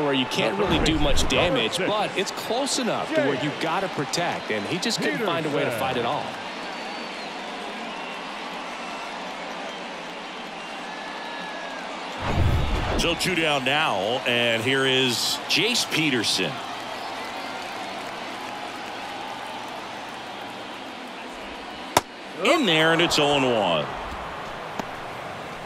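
A crowd murmurs in a large stadium.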